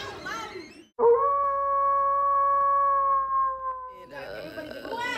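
A young woman sings a long held note close to a phone microphone.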